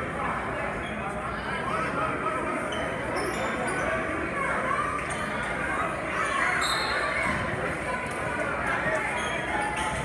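A crowd chatters and cheers in a large echoing gym.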